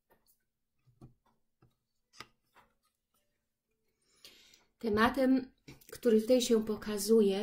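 Cards tap and slide softly on a table.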